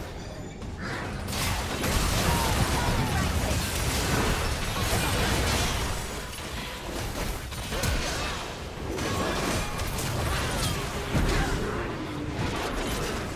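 Game spell effects burst and clash rapidly during a fight.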